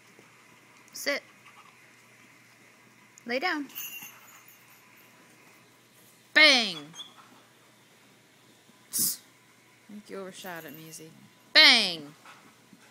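A dog barks loudly several times, close by.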